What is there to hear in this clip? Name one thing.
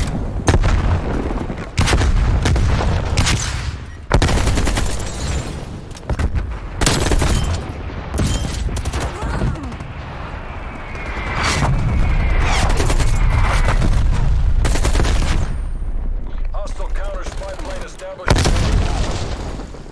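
Explosions rumble with deep booms.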